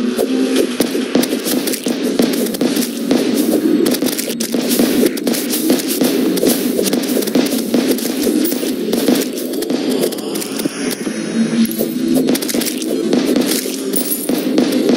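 Rapid electronic shots and hit sounds crackle repeatedly.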